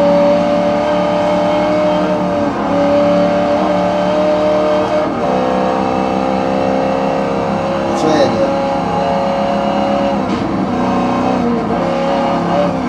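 A racing car engine roars steadily at high revs, dropping briefly at each gear change.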